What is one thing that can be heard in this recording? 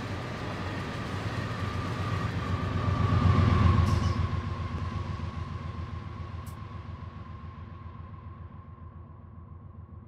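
A diesel locomotive engine roars loudly as it passes close by, then fades into the distance.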